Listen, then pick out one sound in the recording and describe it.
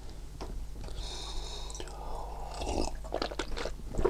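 A man sips loudly from a mug.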